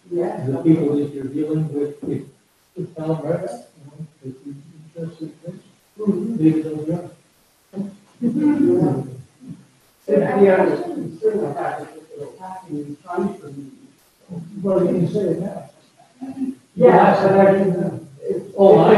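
An elderly man talks calmly through a microphone, pausing between phrases.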